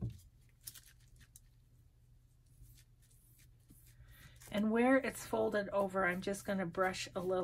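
A brush swishes softly across paper.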